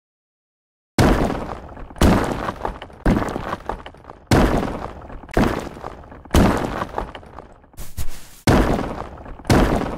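A pickaxe strikes rock over and over with sharp, loud blows.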